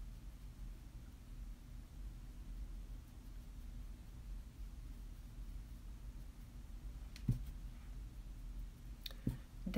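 A makeup brush softly brushes against skin.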